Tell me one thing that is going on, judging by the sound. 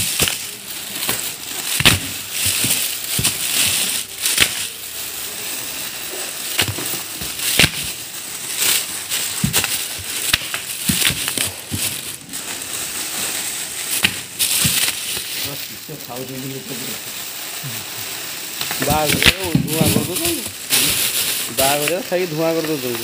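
Plastic bags crinkle and rustle as hands move them about.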